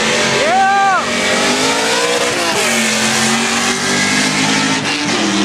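Racing car engines roar loudly, outdoors.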